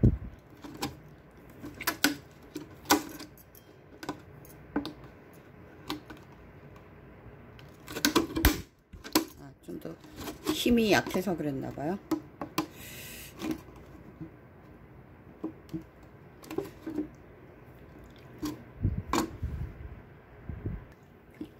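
A thin plastic bottle crinkles and crackles as it is handled.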